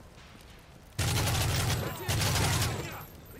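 An explosion booms in a game.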